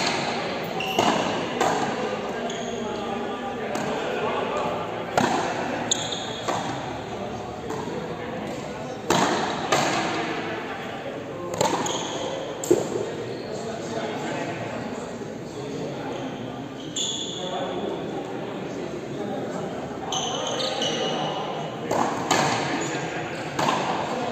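Frontenis rackets strike a ball sharply in an echoing indoor court.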